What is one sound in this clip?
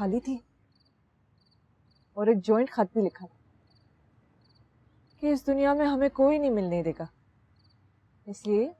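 A young woman speaks softly and close by, in short phrases with pauses.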